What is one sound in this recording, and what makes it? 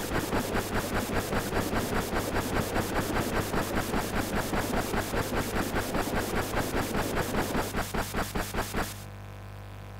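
A volcano erupts with a fast, pulsing rumble that stops suddenly.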